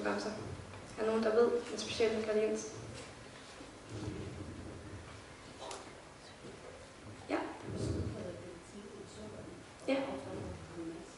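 A young woman speaks calmly through a headset microphone.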